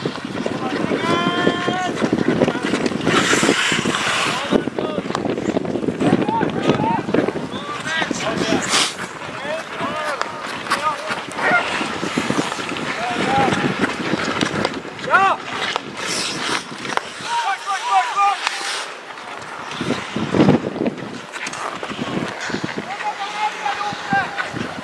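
Young men shout to each other across an open outdoor rink.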